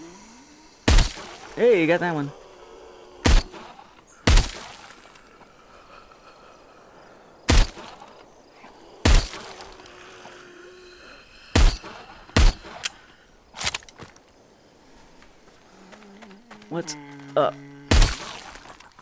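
Gunshots ring out sharply, one at a time, with a short echo.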